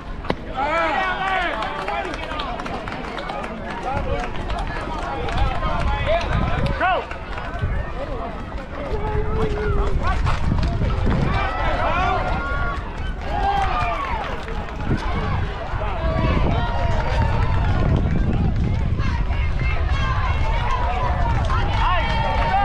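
Young girls call out and cheer across an open field.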